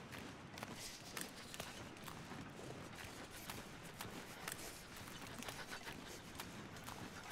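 Footsteps crunch and scrape steadily over icy snow.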